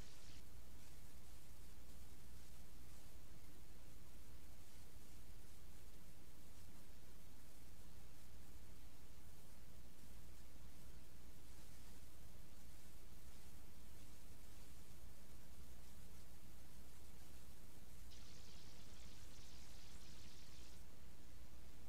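Music plays quietly.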